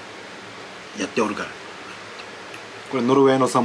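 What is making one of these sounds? Chopsticks clink against a bowl.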